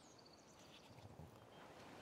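A wolf yawns with a soft whine.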